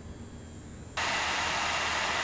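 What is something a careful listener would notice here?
Computer fans roar with a loud, steady rushing hiss.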